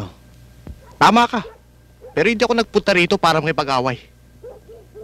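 A middle-aged man speaks firmly, close by.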